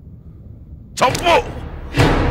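A man shouts angrily up close.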